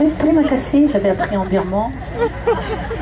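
A woman speaks with animation into a microphone, heard through loudspeakers in a large echoing space.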